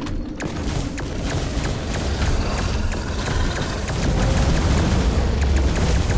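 A large creature roars and stomps.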